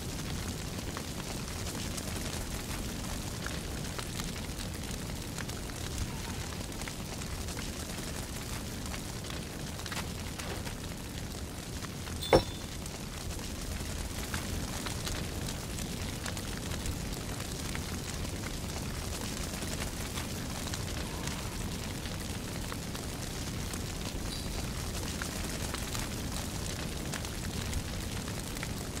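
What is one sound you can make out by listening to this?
Molten lava rumbles and crackles steadily.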